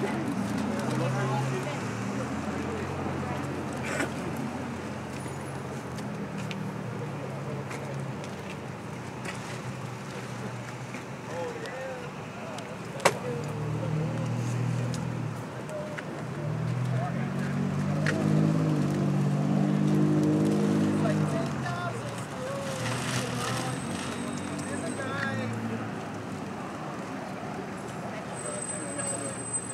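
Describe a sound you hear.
Men talk nearby in low voices.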